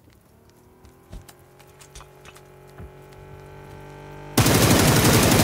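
A vehicle engine revs and rises in pitch.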